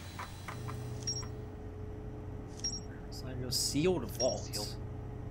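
Short electronic beeps chime from a game menu.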